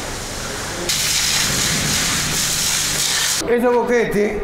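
Water sprays steadily in a fine hiss.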